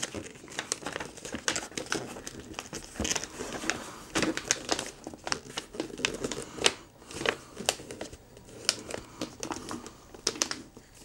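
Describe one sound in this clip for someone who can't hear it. Wrapping paper crinkles and tears as hands pull at a gift.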